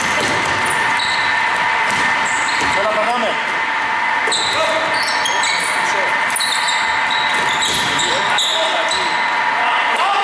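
Basketball shoes squeak on a hardwood court in a large echoing hall.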